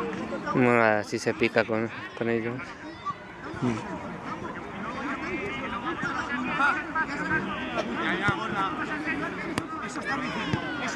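Men shout to each other outdoors across a football pitch.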